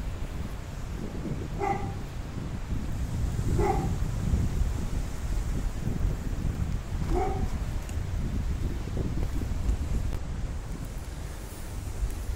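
Wind rumbles and buffets outdoors throughout.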